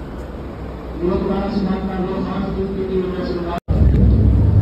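A group of men chant loudly together.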